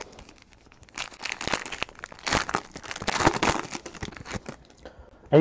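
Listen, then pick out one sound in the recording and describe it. A foil wrapper crinkles and rustles as it is torn open.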